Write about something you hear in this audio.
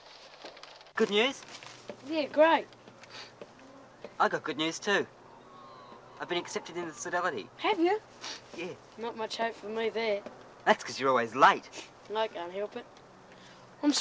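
A teenage boy calls out and talks cheerfully, close by.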